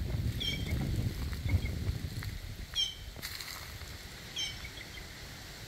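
A bird chirps in short, high calls nearby.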